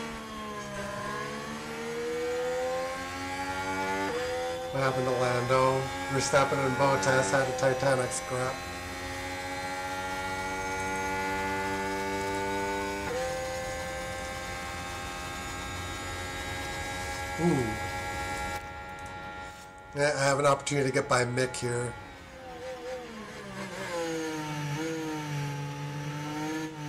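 A racing car engine whines at high revs, rising and falling as it shifts gears.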